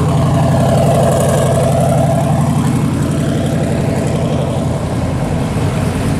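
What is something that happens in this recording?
A pickup truck's engine rumbles deeply as it drives slowly past.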